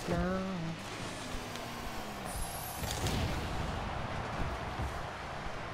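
A car engine roars and hisses with boost.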